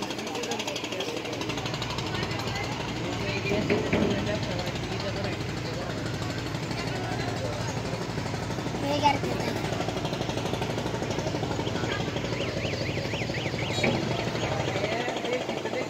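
A boat engine chugs steadily nearby.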